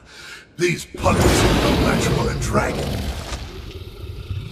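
A dragon growls and roars.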